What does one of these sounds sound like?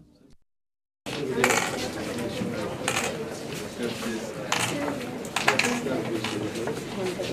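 Footsteps shuffle as a group walks.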